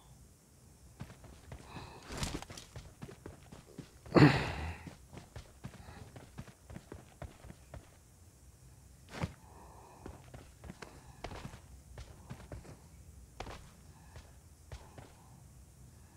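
Footsteps run over the ground.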